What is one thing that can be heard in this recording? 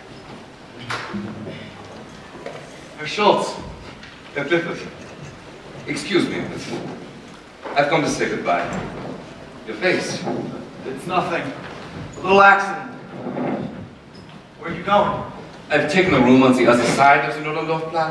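A man speaks with animation on a stage, heard from a distance in a large hall.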